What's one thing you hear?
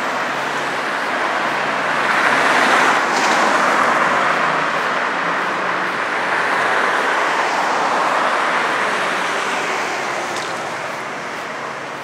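A car drives past on the street with a rushing swell that fades.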